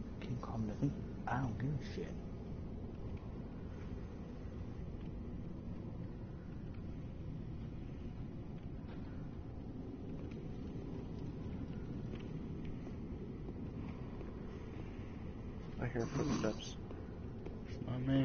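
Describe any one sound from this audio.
A fire crackles and hisses softly.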